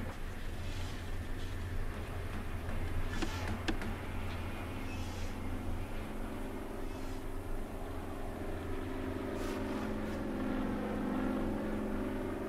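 A drone's motors hum steadily as it flies.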